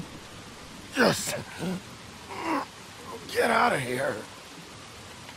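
A man speaks weakly and haltingly, groaning in pain.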